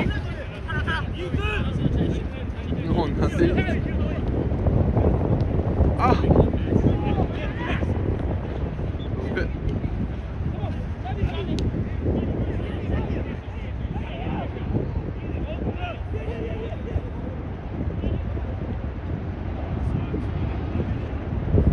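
Young men shout to each other across a field outdoors.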